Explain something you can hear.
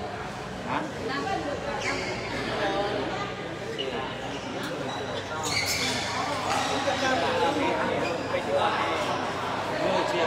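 Players' shoes squeak and patter on a hard court.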